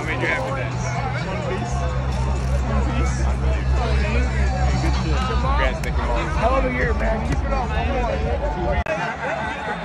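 A young man talks excitedly up close.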